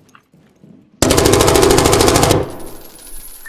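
An automatic rifle fires a rapid burst, loud and close.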